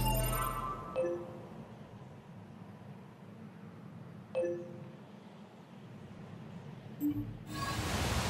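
Soft electronic menu blips sound a few times.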